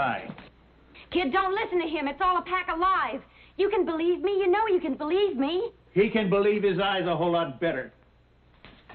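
A young woman shouts angrily close by.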